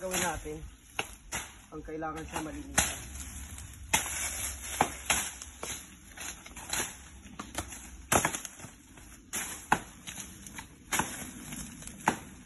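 A machete chops into plant stems with sharp, repeated strikes.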